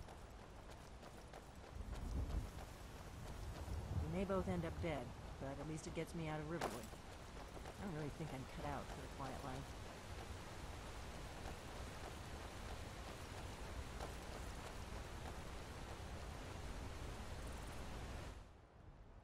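Footsteps run over stony ground.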